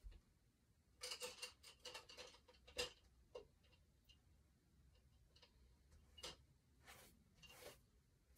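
A paintbrush scrapes and dabs against canvas.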